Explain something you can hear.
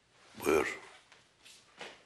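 An elderly man speaks briefly in a low voice.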